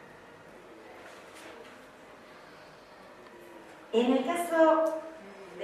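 A woman speaks calmly into a microphone, heard through a loudspeaker in a large room.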